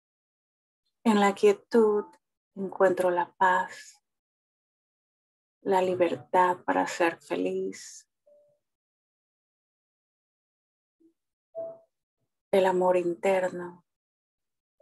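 A middle-aged woman speaks calmly in short phrases, close to a microphone over an online call.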